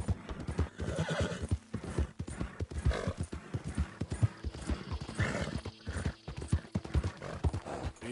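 Horse hooves clop steadily at a quick pace on dirt.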